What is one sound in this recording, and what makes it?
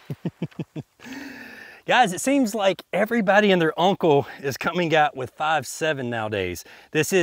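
A man talks calmly and close to a microphone, outdoors.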